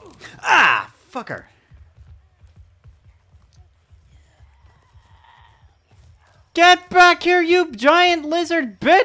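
A young man speaks with animation in a high, put-on voice through a headset microphone.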